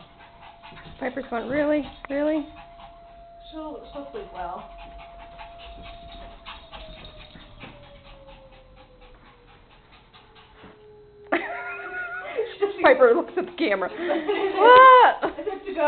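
Small dogs bark playfully close by.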